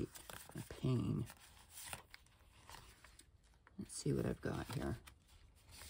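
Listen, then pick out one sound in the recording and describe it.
Sheets of paper rustle and flap as they are handled.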